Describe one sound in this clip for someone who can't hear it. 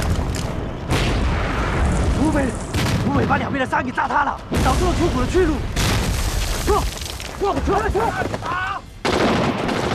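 A man shouts orders urgently.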